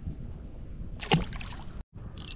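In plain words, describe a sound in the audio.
A fish drops back into the water with a splash.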